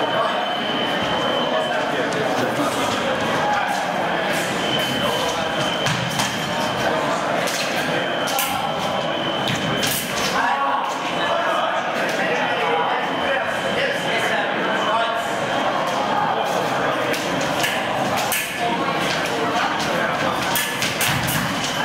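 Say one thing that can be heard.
Fencing blades click and clash.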